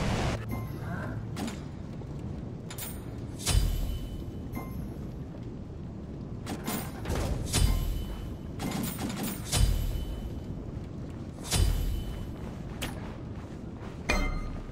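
Short game interface chimes sound as items are selected and bought.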